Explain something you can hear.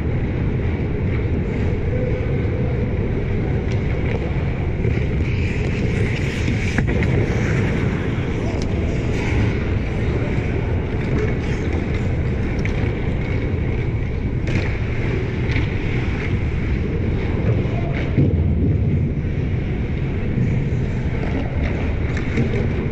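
Skate blades scrape and hiss on ice in a large echoing arena.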